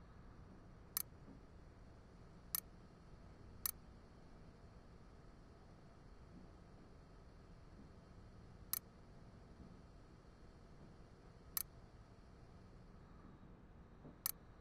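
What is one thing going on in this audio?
A short electronic click sounds now and then as a menu choice changes.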